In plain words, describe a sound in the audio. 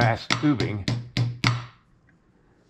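A hammer strikes a metal chisel in quick, ringing blows.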